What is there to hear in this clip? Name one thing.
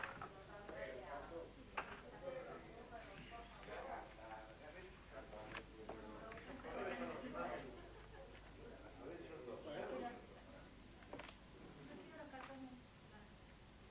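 A woman speaks quietly, almost whispering, close by.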